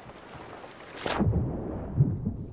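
Something plunges into the water with a splash.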